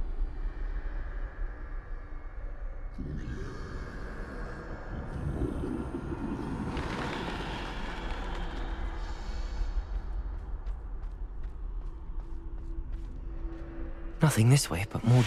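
Footsteps tap on cobblestones.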